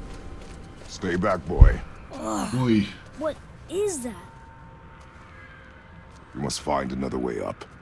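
A man speaks in a low, deep voice, close by.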